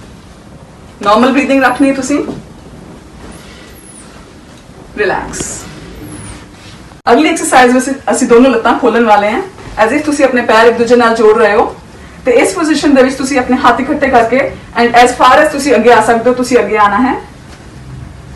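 A woman speaks calmly and clearly nearby.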